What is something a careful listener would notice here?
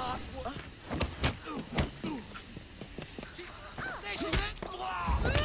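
Punches land with heavy thuds.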